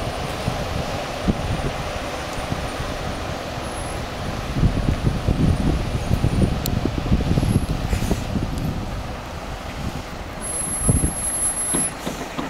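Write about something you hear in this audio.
A bus engine rumbles as the bus drives slowly past close by.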